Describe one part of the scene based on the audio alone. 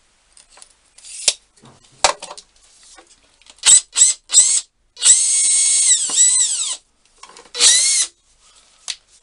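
A cordless drill whirs in short bursts, speeding up and slowing down.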